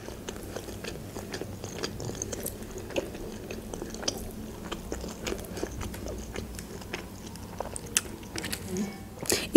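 A young woman chews food noisily up close.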